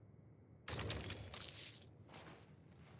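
Items rustle and clatter as they are picked up from a crate.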